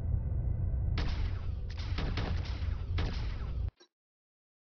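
Laser cannons fire in sharp bursts.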